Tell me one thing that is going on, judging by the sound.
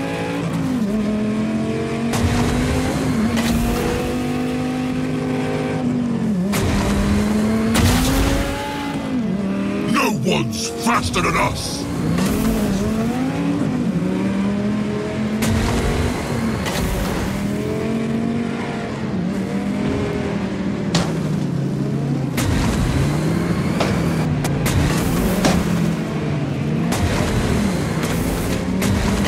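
A racing car's engine roars and whines, rising and falling in pitch as it speeds up and slows down.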